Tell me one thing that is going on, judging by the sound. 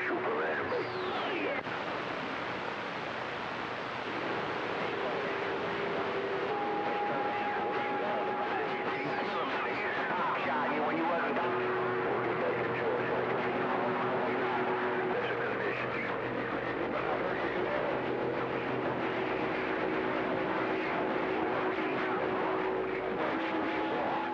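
A radio receiver hisses and crackles with static through a small loudspeaker.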